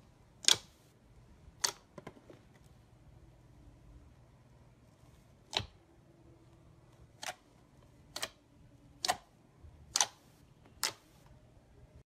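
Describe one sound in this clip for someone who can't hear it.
Fingers poke into soft foam with sharp squelching pops.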